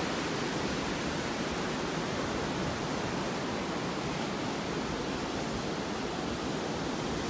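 Waves crash and wash onto the shore in a steady roar.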